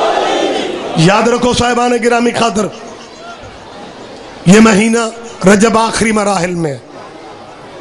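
A man chants in long, loud, drawn-out cries through a microphone.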